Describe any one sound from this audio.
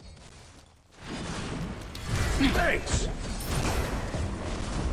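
Magic blasts and impacts crash and whoosh in a fight.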